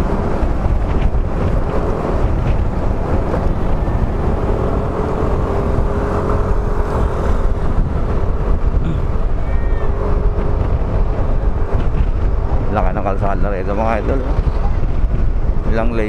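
Wind rumbles loudly past the rider.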